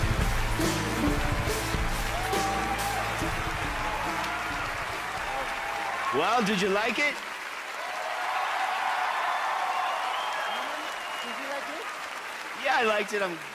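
A large crowd claps and cheers in a large hall.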